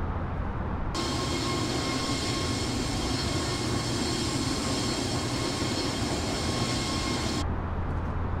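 Jet engines roar and whine loudly, heard from outside an airliner.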